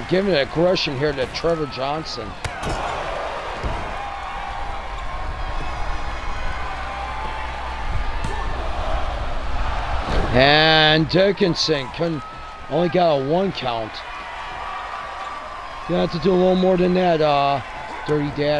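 A crowd cheers in a large arena.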